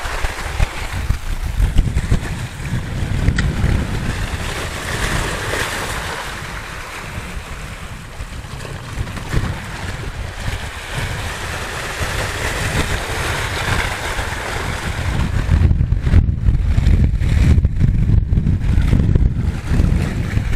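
Waves wash and splash against rocks close by.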